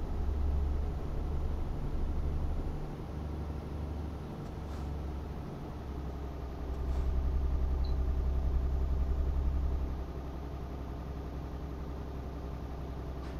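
A truck engine drones steadily with a low rumble.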